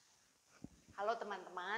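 A woman speaks with animation, close by.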